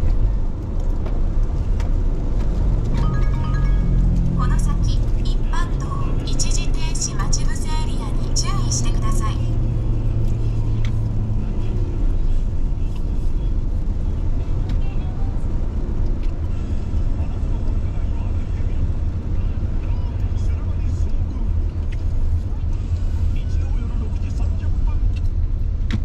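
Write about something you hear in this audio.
Tyres hiss over a wet road.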